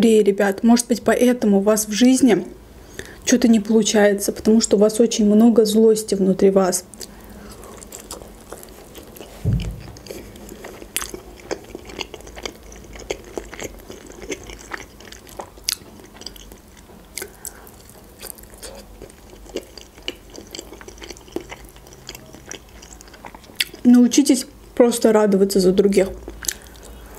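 A young woman talks softly and close to a microphone.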